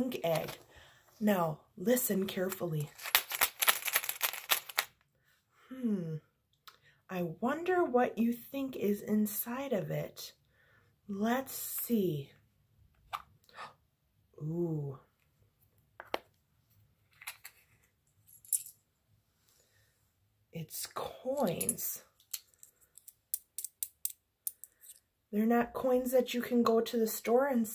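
A woman talks with animation, close up.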